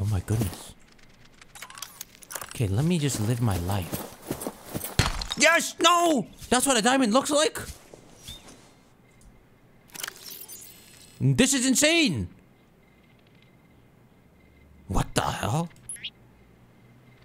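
A young man talks animatedly into a close microphone.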